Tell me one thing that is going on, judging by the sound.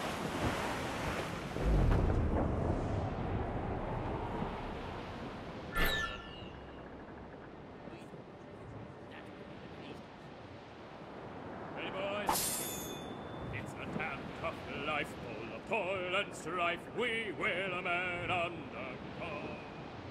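Wind blows steadily through sails and rigging.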